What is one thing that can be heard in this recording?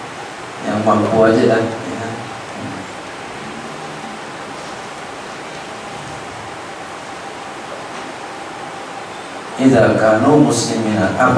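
A man speaks calmly through a microphone, with long pauses.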